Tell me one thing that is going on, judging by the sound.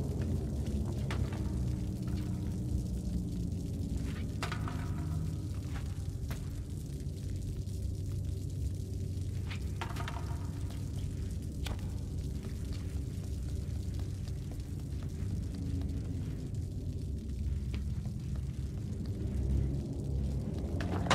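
Small footsteps patter on a hard floor.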